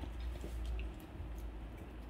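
A dog gnaws on a bone, with wet chewing sounds.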